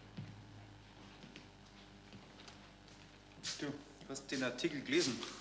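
Paper rustles as a newspaper is handled.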